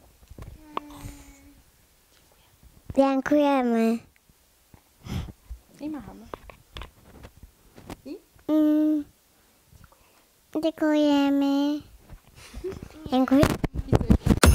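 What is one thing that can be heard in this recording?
A young child speaks loudly into a close microphone.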